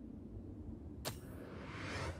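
A short click sounds as a menu choice is confirmed.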